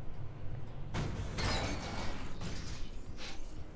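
A heavy metal door slides open with a hiss.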